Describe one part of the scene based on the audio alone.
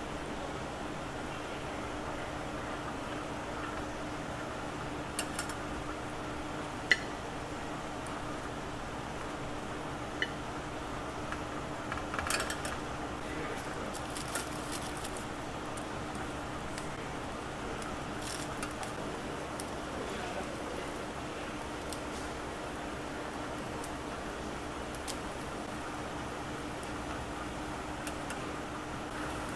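Metal tongs clink against a grill now and then.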